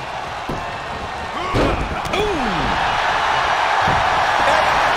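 Bodies slam hard onto a wrestling ring mat.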